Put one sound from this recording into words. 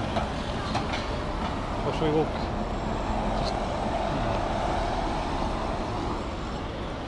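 A car drives past on a nearby street.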